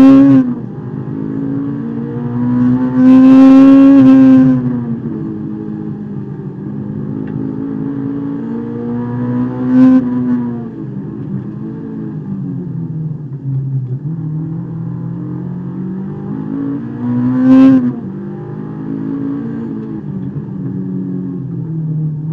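A car engine roars loudly from inside the cabin, revving up and dropping back again and again.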